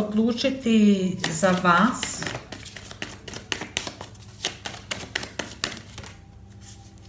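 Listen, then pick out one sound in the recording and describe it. Cards flick and slap softly as they are shuffled by hand.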